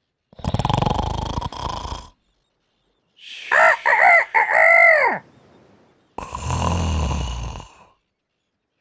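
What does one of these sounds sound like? A cartoon man snores loudly.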